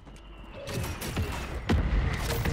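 A pistol fires sharp shots indoors.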